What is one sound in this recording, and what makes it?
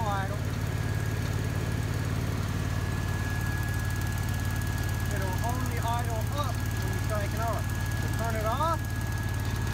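An engine runs with a steady, low, droning rumble.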